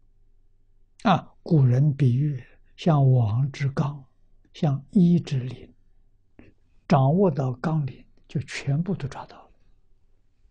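An elderly man speaks calmly and with animation into a close microphone.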